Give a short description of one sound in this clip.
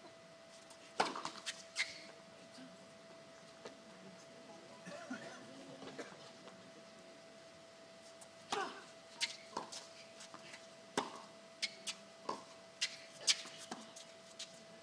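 Tennis balls are struck with sharp pops outdoors.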